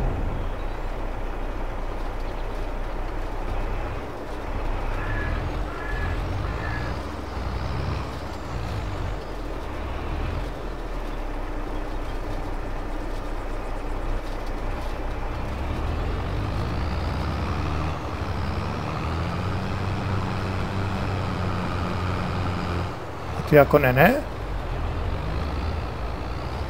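A tractor engine rumbles steadily at idle.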